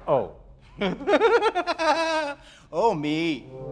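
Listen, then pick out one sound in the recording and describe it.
An elderly man exclaims loudly.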